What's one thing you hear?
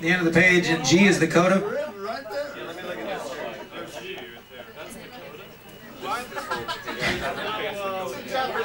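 A crowd of adults chats loudly nearby.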